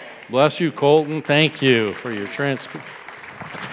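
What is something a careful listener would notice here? An older man speaks loudly with feeling through a microphone in a reverberant hall.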